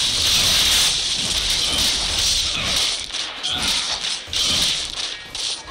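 Game fighting effects whoosh and crackle in quick bursts.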